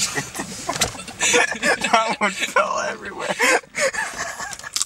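Two young men laugh.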